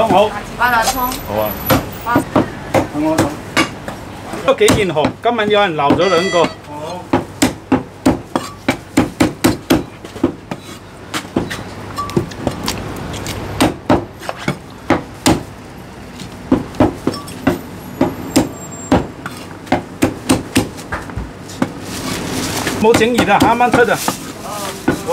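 A heavy cleaver chops through meat and bone onto a wooden block with sharp, repeated thuds.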